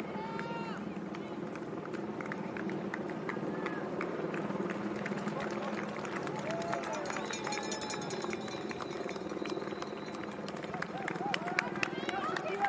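Running shoes patter quickly on pavement.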